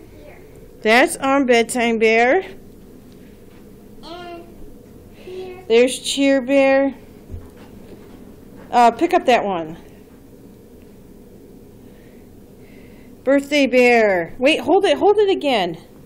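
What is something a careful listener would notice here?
A young child speaks in short, excited bursts close by.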